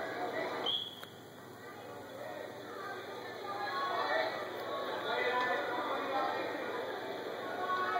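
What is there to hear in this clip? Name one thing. Wrestlers' shoes squeak on a mat.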